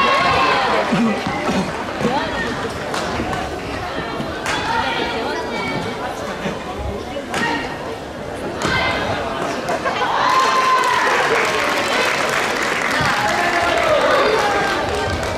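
Badminton rackets sharply smack a shuttlecock back and forth.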